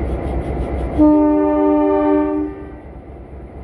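A locomotive horn blares loudly for a moment.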